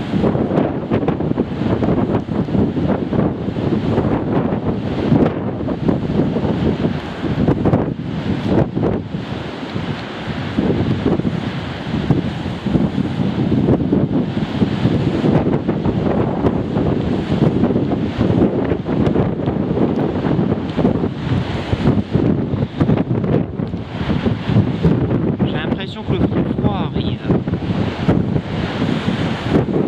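Strong wind gusts and roars outdoors.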